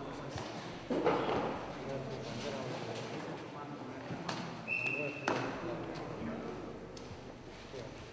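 A gymnast lands with a thud on a mat.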